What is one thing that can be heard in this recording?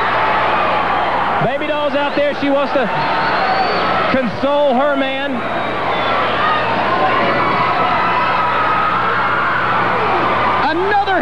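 A large crowd cheers and murmurs in a big echoing arena.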